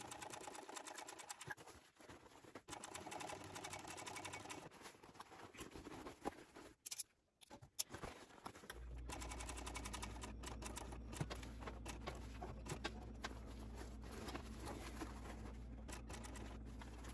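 Fabric rustles and slides under hands.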